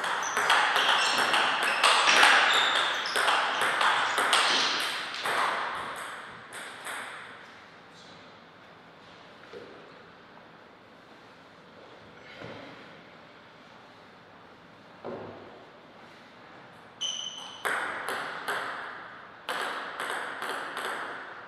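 A ping-pong ball clicks rapidly back and forth off paddles and a table.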